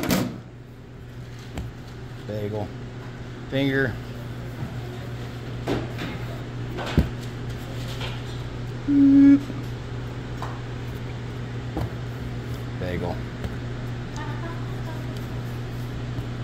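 Fingers press soft dough on a metal counter.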